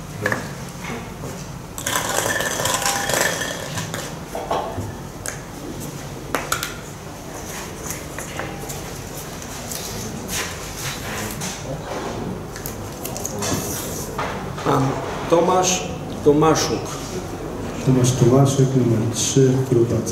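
A man speaks calmly into a microphone nearby.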